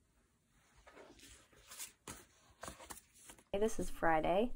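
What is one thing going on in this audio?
Stiff paper rustles and flaps as it is handled.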